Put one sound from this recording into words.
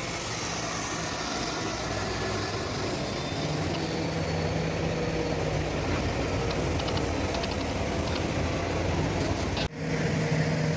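A wheel loader engine idles close by.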